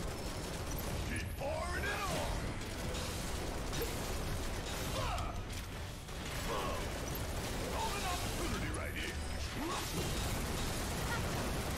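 Fiery blasts explode with a roar.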